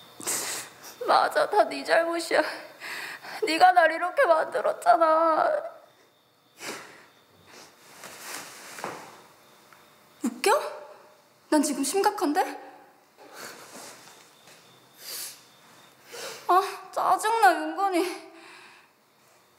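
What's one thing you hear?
A young woman speaks close by in an upset, pleading voice.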